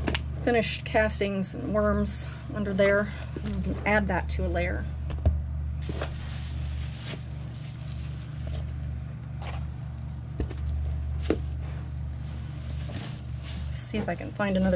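Hands dig and rustle through damp soil.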